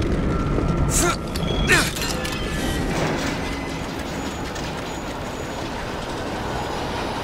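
A metal hook clanks onto a rail and whirs as it slides along.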